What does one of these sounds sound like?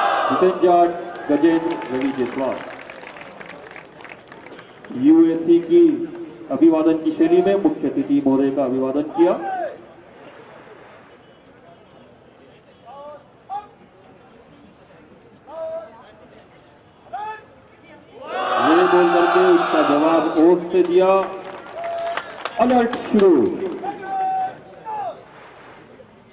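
A man shouts drill commands loudly outdoors.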